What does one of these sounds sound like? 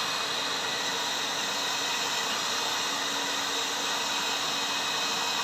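A hair dryer blows steadily and loudly close by.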